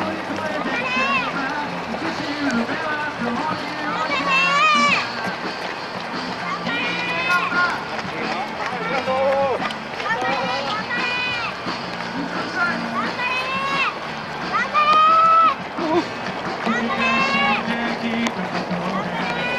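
Many runners' footsteps patter on a paved road outdoors.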